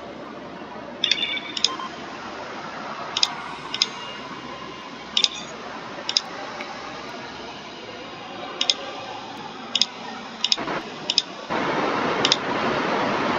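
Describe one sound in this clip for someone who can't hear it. Short electronic interface beeps and clicks sound now and then.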